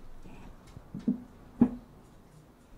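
A mug knocks down onto a wooden surface.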